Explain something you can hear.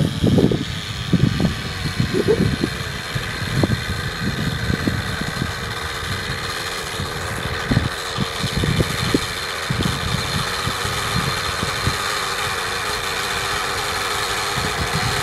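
A nitro radio-controlled helicopter engine whines as the helicopter hovers low.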